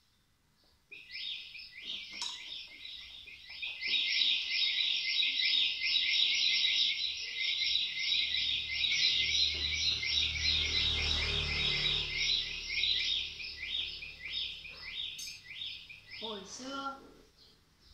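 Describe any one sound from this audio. An electronic keyboard plays a fast, bright, high tune.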